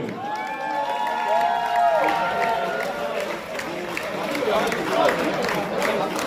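A crowd claps hands in rhythm.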